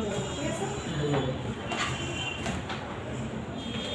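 Paper rustles as it is handled.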